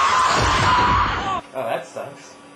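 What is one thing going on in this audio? A car's tyres screech loudly.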